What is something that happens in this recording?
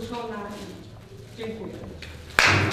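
A woman speaks warmly close by.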